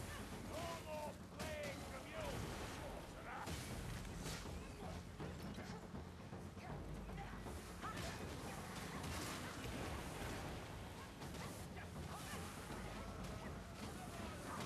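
Weapons strike and slash in quick blows.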